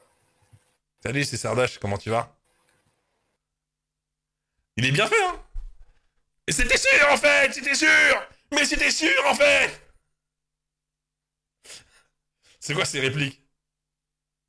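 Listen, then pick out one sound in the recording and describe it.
A man laughs loudly close to a microphone.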